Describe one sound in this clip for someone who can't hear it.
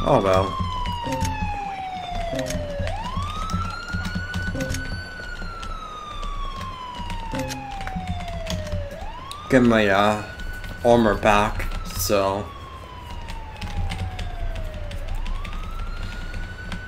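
A police siren wails, rising and falling slowly.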